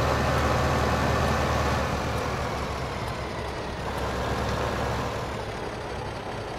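A truck engine rumbles loudly and then winds down as the truck slows to a stop.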